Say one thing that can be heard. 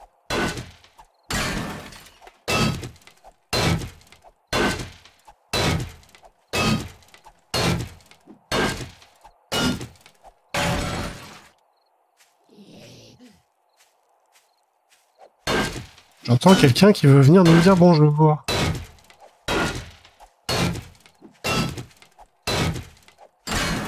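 A pickaxe strikes rock with sharp, regular blows.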